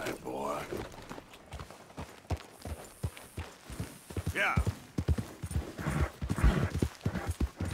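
Horse hooves thud on soft ground at a trot.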